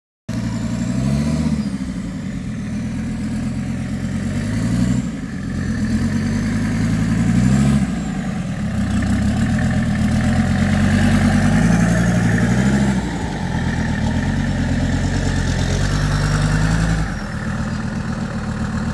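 A truck engine rumbles loudly close by, revving up and down again and again.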